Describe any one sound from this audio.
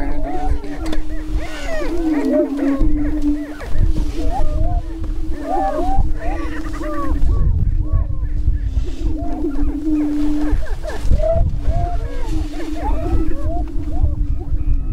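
Prairie chickens boom with a low, steady hooting drone.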